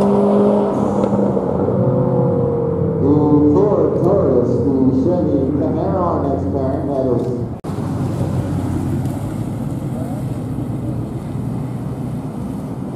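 A sports car engine idles with a deep rumble.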